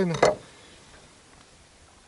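A knife cuts on a wooden board.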